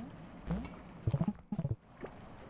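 A quick burst of clicking tones sounds as a menu opens.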